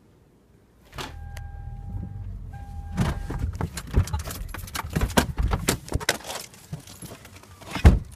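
A car engine rumbles low while driving.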